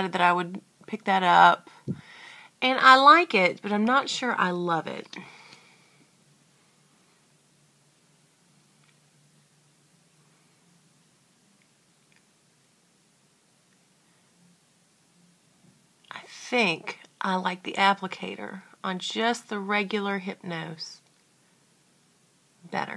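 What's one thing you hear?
A woman talks with animation close to the microphone.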